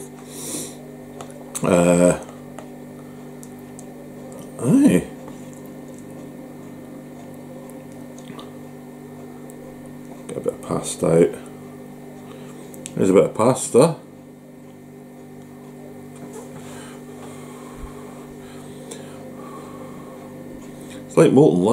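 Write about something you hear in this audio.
A man chews food with his mouth close by.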